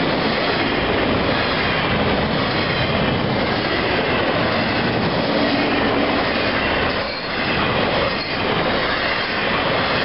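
A freight train rumbles and clatters past on the rails close by.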